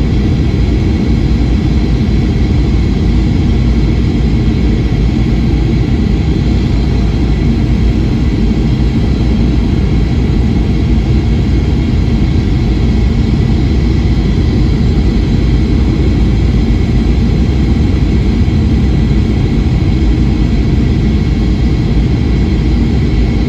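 A jet engine roars steadily from close by.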